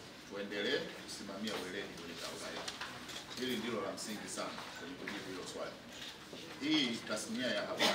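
A man speaks firmly into microphones close by.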